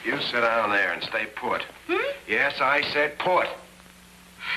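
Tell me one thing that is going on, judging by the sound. A man speaks quickly up close.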